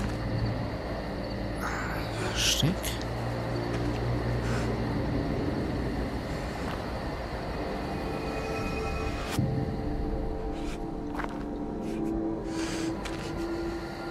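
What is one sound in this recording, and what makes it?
Footsteps crunch slowly over dirt and gravel.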